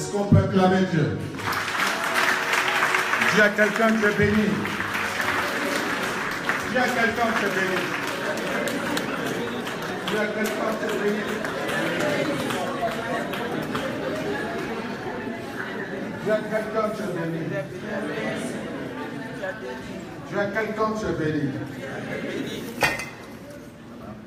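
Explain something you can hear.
A man speaks with animation into a microphone, heard through loudspeakers in a large echoing hall.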